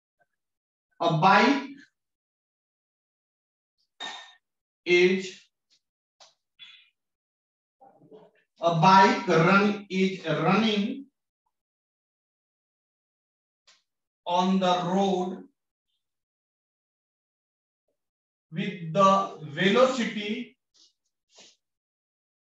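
A man speaks calmly in short phrases, as if explaining.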